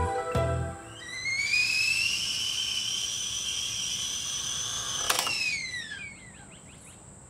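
A kettle whistles shrilly, rising in pitch and then fading.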